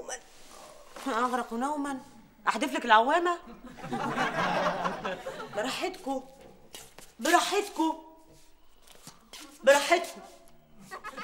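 A woman speaks loudly and with animation, close by.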